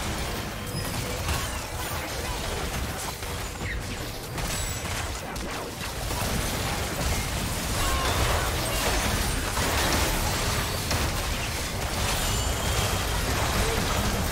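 Magic spells whoosh and crackle in a busy video game battle.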